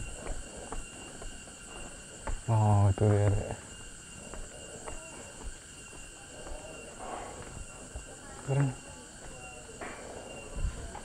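Footsteps tap on a paved path.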